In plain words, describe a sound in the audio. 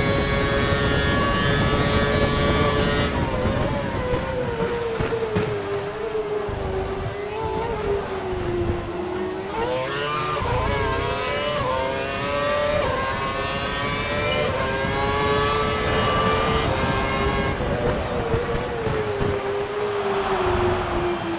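A racing car engine screams at high revs, rising and falling as it shifts gears and brakes for corners.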